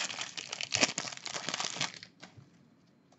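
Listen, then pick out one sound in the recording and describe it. A foil wrapper crinkles and tears loudly.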